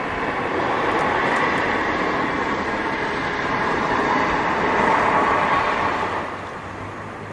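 A car drives past on a road below, its tyres hissing as it passes.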